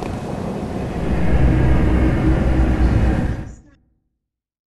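A low rumbling swell rises and ends abruptly.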